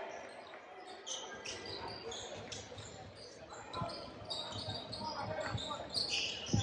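Sneakers squeak sharply on a hardwood court.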